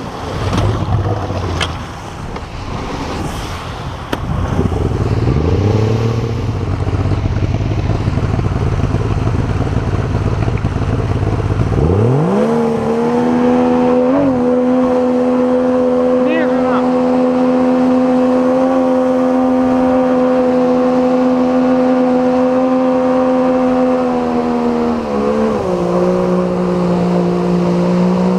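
An outboard motor rumbles low, then revs up to a steady, loud drone.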